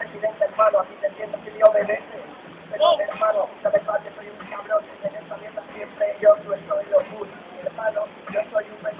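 A young man raps rhythmically into a microphone through loudspeakers, in a large echoing room.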